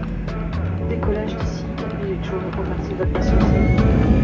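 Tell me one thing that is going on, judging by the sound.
Jet engines hum quietly as an airliner taxis.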